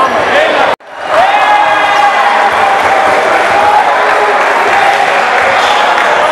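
A crowd of men cheers and sings loudly in an echoing hall.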